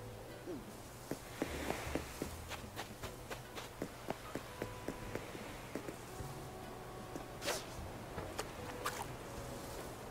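Footsteps patter quickly across sand and rock.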